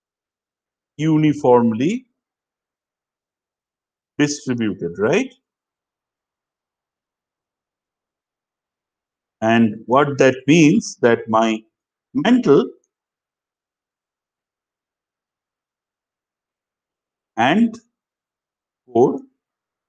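A middle-aged man speaks calmly in short phrases, as if lecturing, heard through a microphone on an online call.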